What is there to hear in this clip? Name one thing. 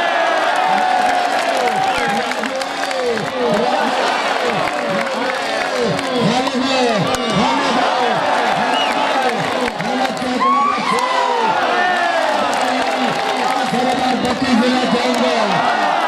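Young men call out loudly during a game.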